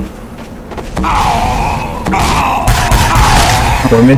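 Rockets explode with loud, roaring blasts.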